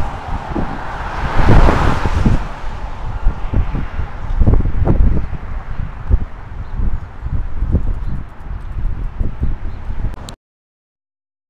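Wind buffets loudly outdoors.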